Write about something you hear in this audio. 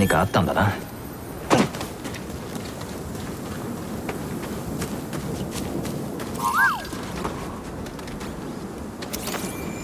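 Footsteps run over rocky ground.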